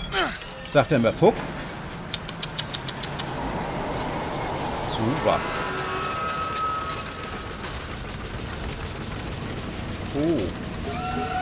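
A metal hook grinds and rattles along a rail at speed.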